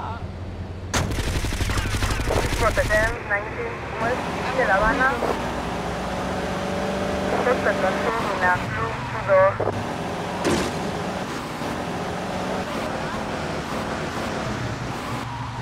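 A car engine revs and drives on.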